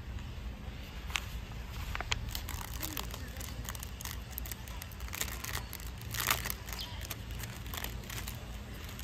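Plastic wrapping crinkles and rustles in someone's hands.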